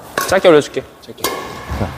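A racket strikes a shuttlecock with a sharp pop.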